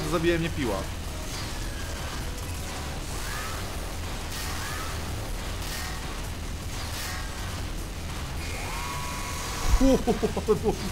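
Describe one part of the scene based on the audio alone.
Video game gunfire rattles rapidly.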